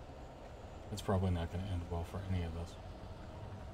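A man speaks close to a microphone in a low voice.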